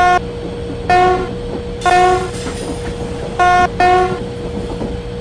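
A train horn sounds in short repeated blasts.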